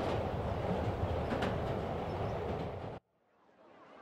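A subway train rumbles and rattles along.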